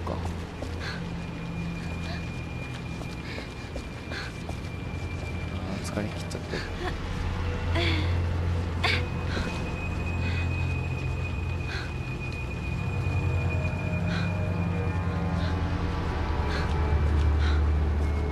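Footsteps walk slowly across a hard floor.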